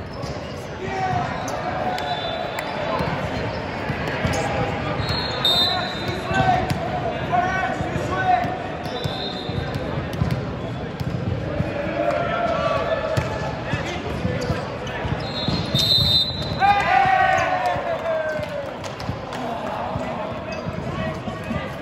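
Teenage boys shout and cheer to each other in an echoing sports hall.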